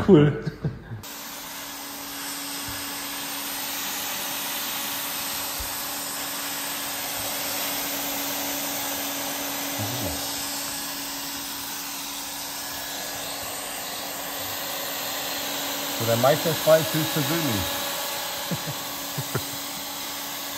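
A hot air welding gun blows with a steady hiss and hum.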